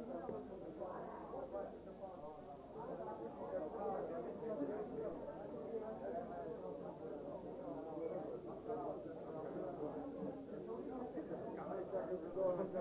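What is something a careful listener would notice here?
A crowd of men and women chatter all around, muffled.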